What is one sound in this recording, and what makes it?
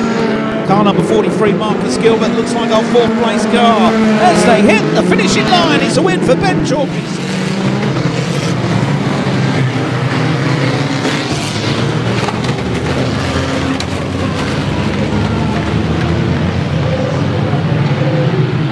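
Racing car engines roar and rev loudly around a dirt track.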